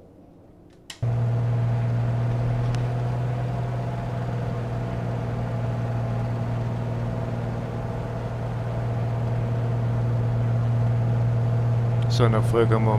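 A single-engine piston propeller plane drones, heard from inside the cockpit.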